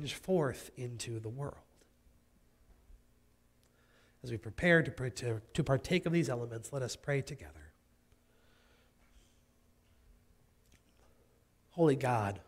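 A man speaks calmly into a microphone in a large echoing room, with pauses between phrases.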